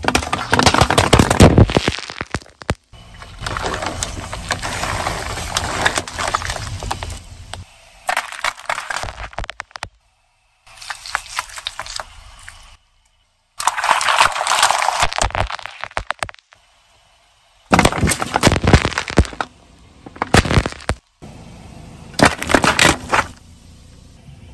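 Liquid sprays and splashes onto the ground.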